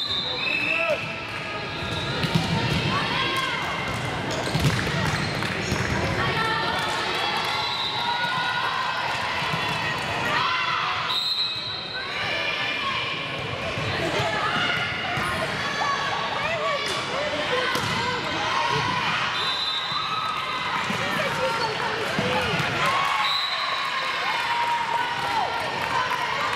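Girls shout and call out to one another across an echoing hall.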